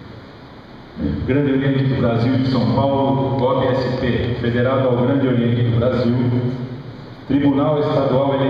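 An elderly man reads out over a loudspeaker in a large echoing hall.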